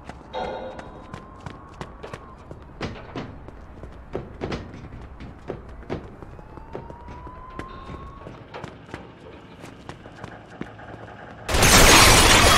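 Footsteps thud and clank on hard floors and metal stairs.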